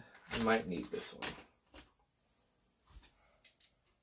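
Small hard pieces click down onto a table.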